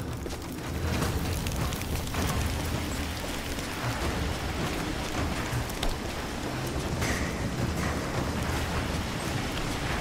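Flames crackle and hiss nearby.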